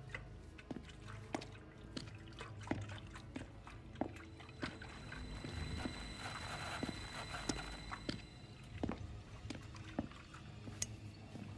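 Footsteps thud on a hard floor at a steady walking pace.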